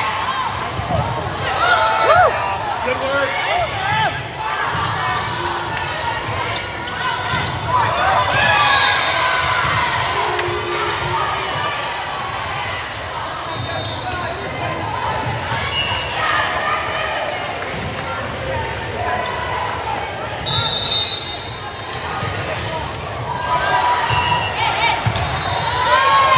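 A crowd of spectators cheers and chatters.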